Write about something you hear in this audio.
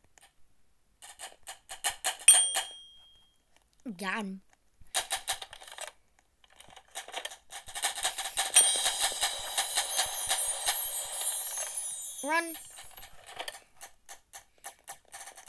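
A toy blaster fires in rapid bursts of shots.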